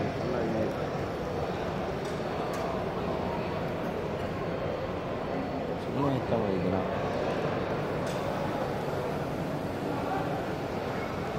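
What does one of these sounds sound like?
A crowd chatters throughout a large echoing hall.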